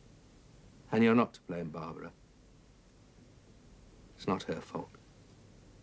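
A young woman speaks quietly nearby.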